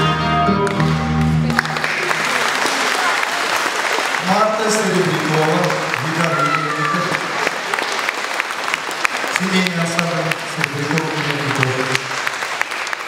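A woman sings into a microphone in an echoing hall.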